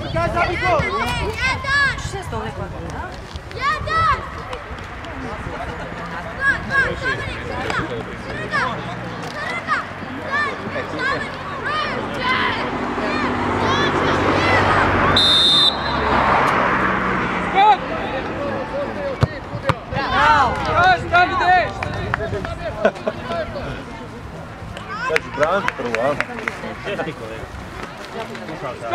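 Young players shout and call to each other across an open field.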